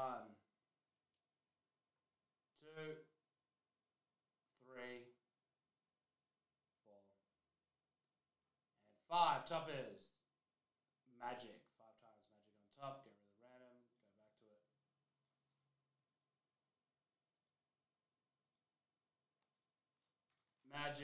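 A young man speaks casually into a microphone in short bursts.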